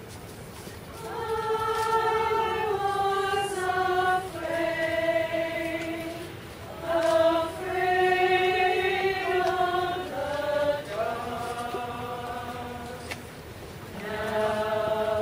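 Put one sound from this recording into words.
A women's choir sings together in a room with some echo.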